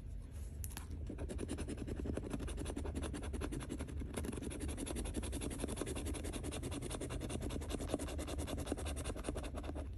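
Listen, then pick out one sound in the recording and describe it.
A coin edge scrapes the coating off a scratch-off lottery ticket.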